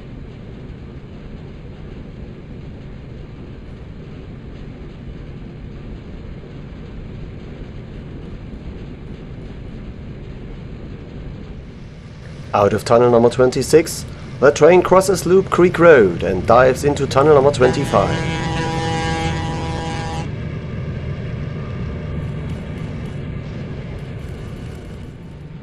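A diesel locomotive engine rumbles steadily.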